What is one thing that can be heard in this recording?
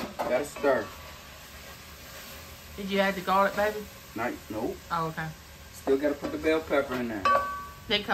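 A wooden spoon scrapes and stirs in a pot.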